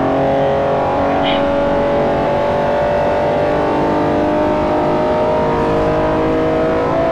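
A racing car engine roars steadily, its pitch slowly rising as it speeds up.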